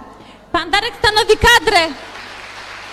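An elderly woman speaks loudly with animation through a microphone.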